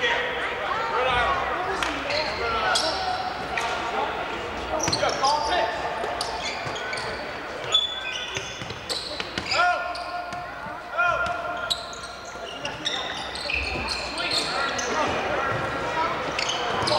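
A crowd murmurs and calls out in a large echoing gym.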